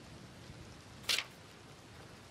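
A paper page rustles as it is turned.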